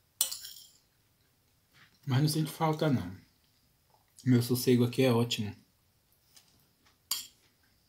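A fork scrapes against a bowl.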